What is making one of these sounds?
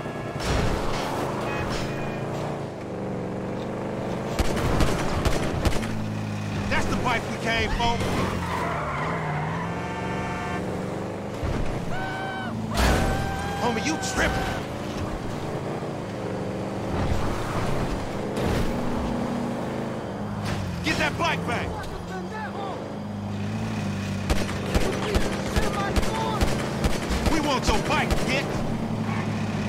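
A car engine hums and revs up and down steadily.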